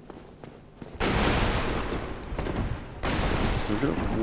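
Bones clatter and crash apart.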